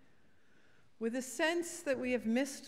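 An elderly woman reads out into a microphone.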